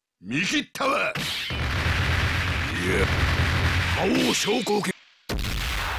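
Fiery special attacks burst with loud explosive blasts.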